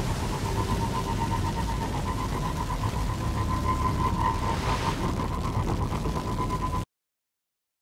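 A hover bike engine hums steadily.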